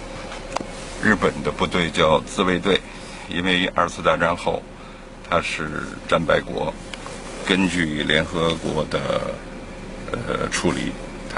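An elderly man talks calmly close to the microphone.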